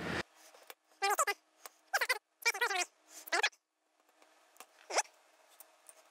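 Metal pliers click as they open and close.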